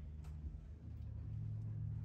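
A motorbike engine rumbles nearby.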